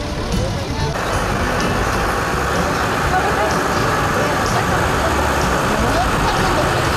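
A tractor engine rumbles close by.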